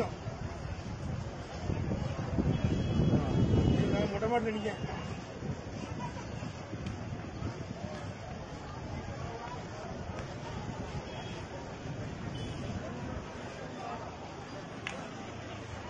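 A large crowd murmurs and shouts in a street below, heard from a distance.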